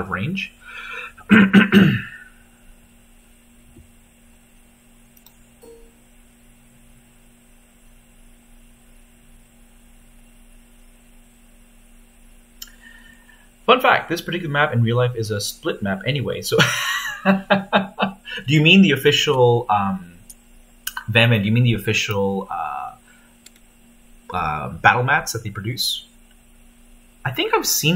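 A man talks casually over an online call.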